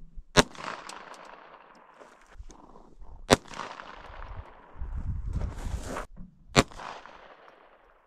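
A pistol fires sharp shots outdoors, each echoing off into the distance.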